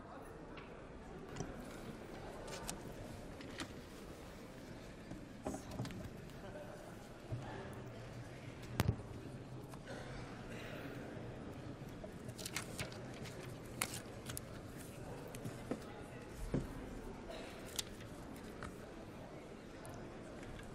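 Many people murmur quietly in a large echoing hall.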